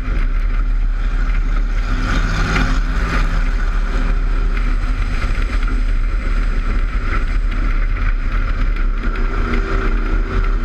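A race car engine roars loudly close by.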